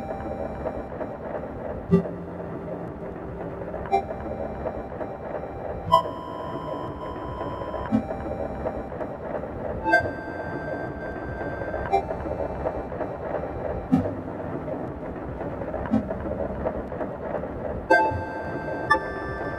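Synthesizer chords ring out and change every two seconds.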